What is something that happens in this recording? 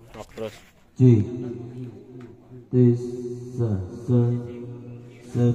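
A young man sings into a microphone, heard through loudspeakers.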